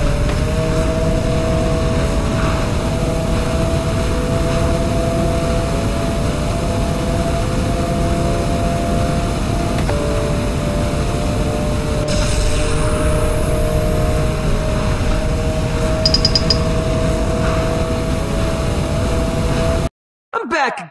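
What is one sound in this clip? A racing car engine whines steadily at high speed.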